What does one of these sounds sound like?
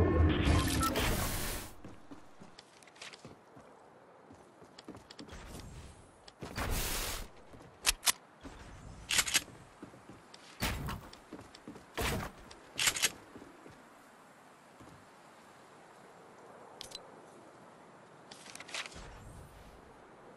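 Wooden planks clack and thud as walls and ramps snap into place.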